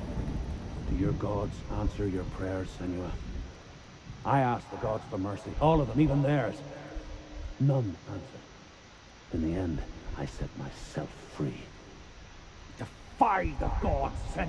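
A man speaks slowly and menacingly, close by.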